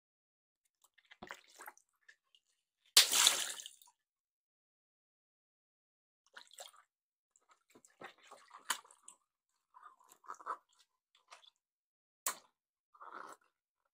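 Water splashes and sloshes as hands move through it.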